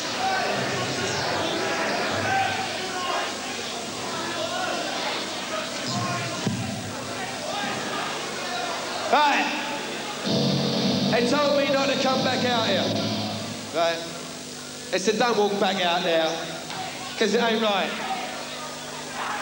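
A young man speaks into a microphone over a loudspeaker, echoing in a hall.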